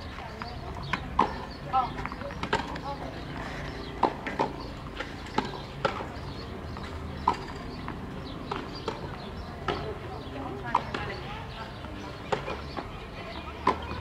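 Tennis rackets strike a ball back and forth in a rally outdoors.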